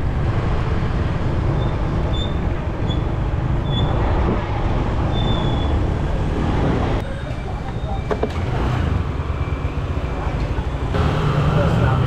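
Wind buffets loudly in the open air.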